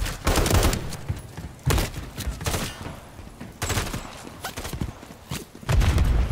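Rifle shots bang out in short, loud bursts.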